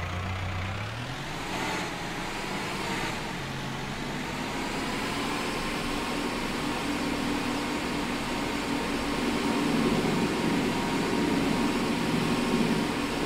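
A tractor engine revs up and drives off, rumbling steadily.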